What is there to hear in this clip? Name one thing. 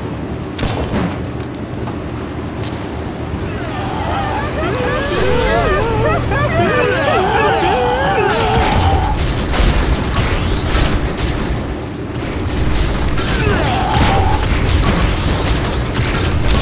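Game tank engines rumble low and steadily.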